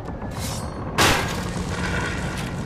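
A metal lid clanks open.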